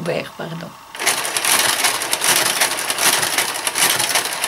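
A knitting machine carriage slides noisily across the needle bed.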